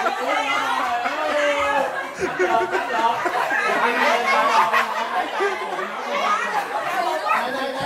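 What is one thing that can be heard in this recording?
A crowd of adults talks and shouts excitedly close by.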